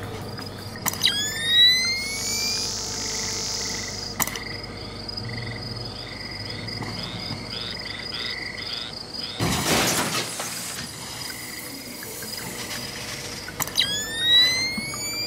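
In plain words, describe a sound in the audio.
Night vision goggles switch on with a rising electronic whine.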